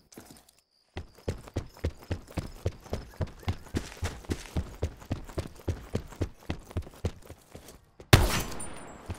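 Footsteps thud quickly and evenly on a hard floor.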